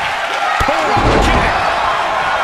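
A body slams onto a hard floor with a heavy thud.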